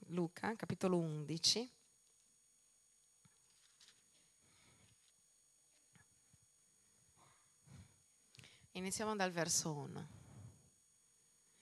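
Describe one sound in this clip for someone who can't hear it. A woman sings through a microphone in short phrases with long pauses.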